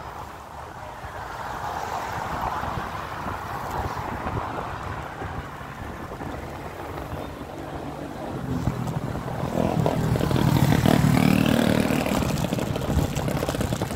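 A motorbike engine hums while riding and grows louder toward the end.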